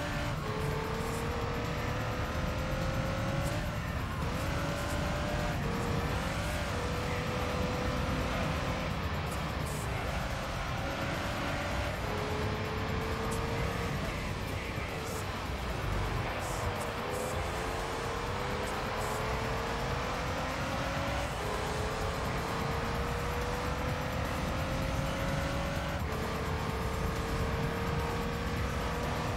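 A racing car engine revs high, rising through the gears with brief drops at each shift.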